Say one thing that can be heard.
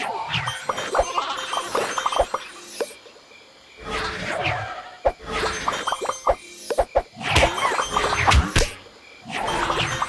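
Balloons pop in quick bursts.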